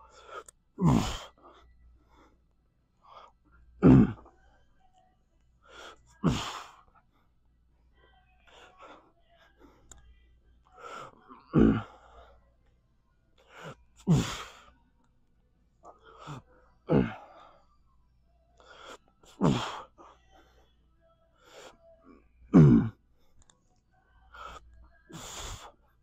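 A man grunts and exhales hard with each lift, close by.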